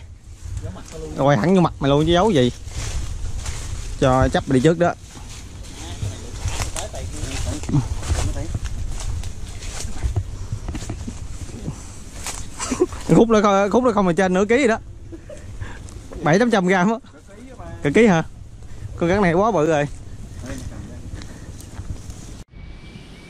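Footsteps crunch through dry leaves and brush.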